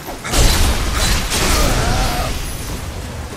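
A sword clashes against armour with a loud metallic crash.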